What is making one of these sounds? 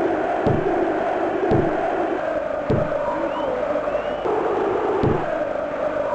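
Synthesized ball kicks thud in a video game football match.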